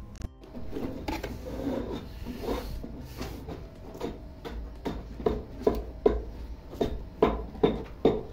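A trowel scrapes and taps on wet mortar.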